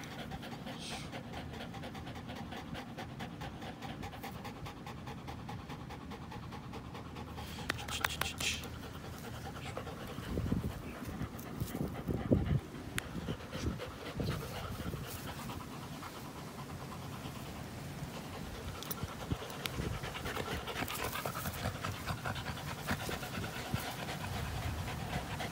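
Dogs growl while tugging on a rope toy.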